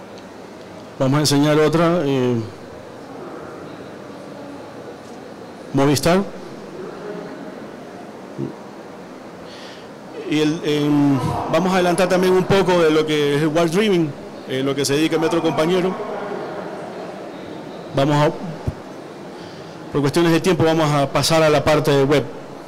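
A man speaks into a microphone over loudspeakers in a large echoing hall, in short bursts with pauses.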